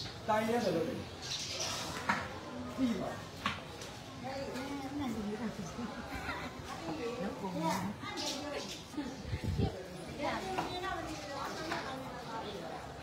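A middle-aged woman talks nearby.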